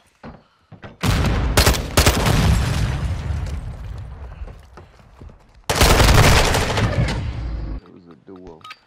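Rapid rifle gunfire rattles loudly in bursts.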